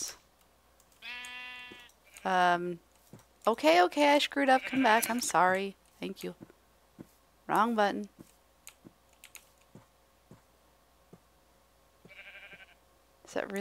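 A sheep bleats.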